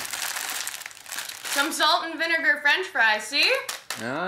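A plastic snack bag crinkles in hands.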